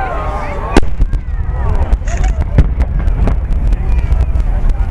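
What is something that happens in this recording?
Firework stars crackle and pop after a burst.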